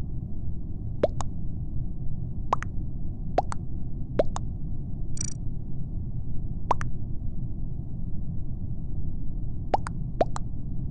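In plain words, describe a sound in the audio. Short rising chirp blips sound again and again as chat messages pop up.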